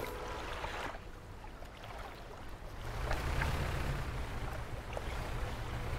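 A boat engine rumbles low and steady.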